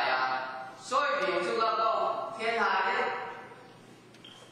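A middle-aged man speaks calmly to a room, heard from a distance.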